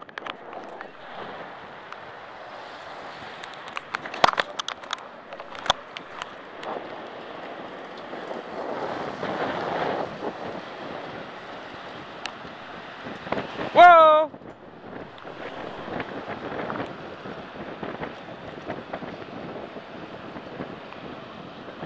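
Wind buffets loudly while riding a bicycle outdoors.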